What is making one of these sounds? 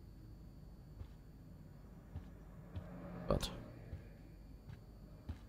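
Footsteps walk slowly across a wooden floor.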